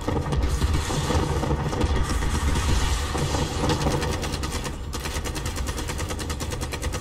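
A giant mechanical beast stomps and rumbles heavily.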